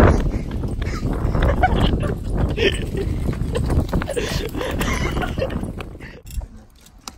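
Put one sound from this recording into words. Wagon wheels rumble and rattle over asphalt.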